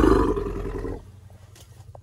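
An elephant rumbles deeply close by.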